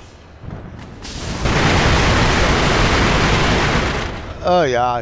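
A burst of fire roars loudly and crackles.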